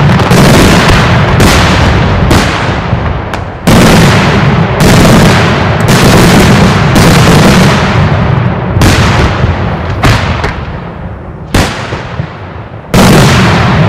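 Firecrackers burst in rapid, crackling bursts overhead.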